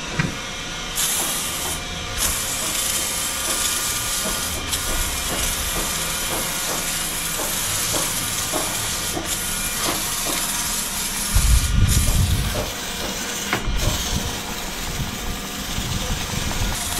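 A pump sprayer hisses steadily as it sprays foam.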